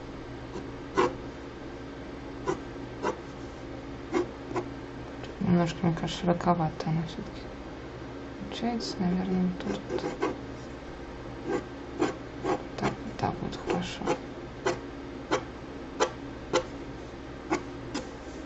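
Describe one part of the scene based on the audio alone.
A pencil scratches and taps on paper.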